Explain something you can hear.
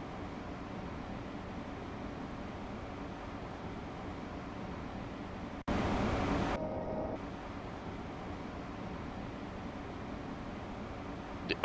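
A train's engine hums steadily while standing still.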